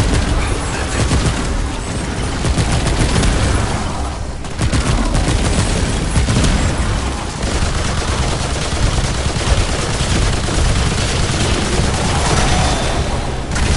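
Energy blasts crackle and boom.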